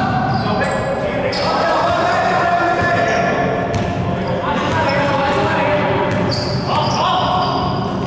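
A basketball bounces on a hardwood floor as a player dribbles.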